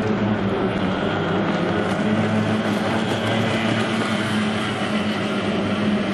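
A racing boat's outboard engine roars loudly at high speed.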